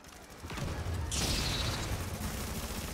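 A blast hisses and roars.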